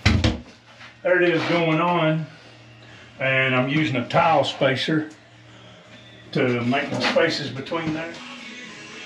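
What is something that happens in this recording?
An adult man speaks calmly and close by.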